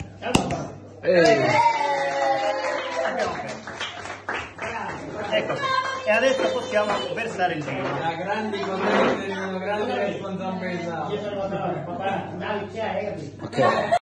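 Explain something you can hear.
A middle-aged man talks and laughs with animation close by.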